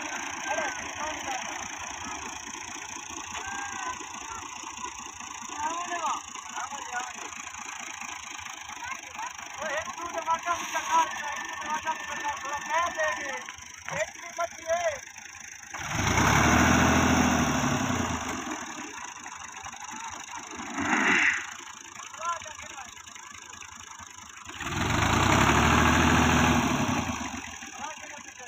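Tractor tyres churn and squelch through wet mud.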